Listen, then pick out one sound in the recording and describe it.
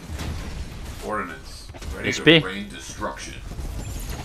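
A young man speaks excitedly nearby.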